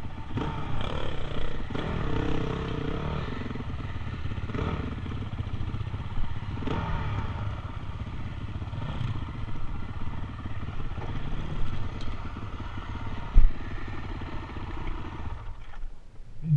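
A dirt bike engine revs and sputters close by.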